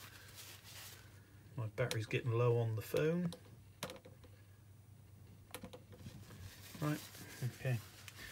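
A cloth rubs softly over a board.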